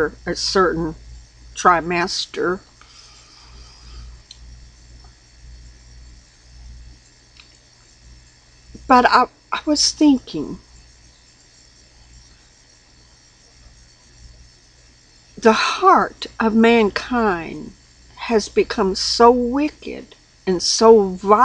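An elderly woman speaks calmly and close to a microphone, in short bursts with pauses.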